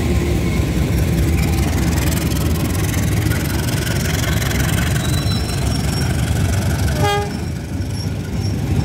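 Freight wagons rumble and clatter loudly along the rails close by.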